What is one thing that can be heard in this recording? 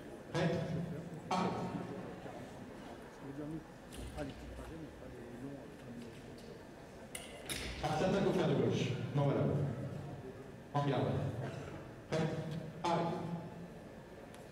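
A man calls out loudly in an echoing hall.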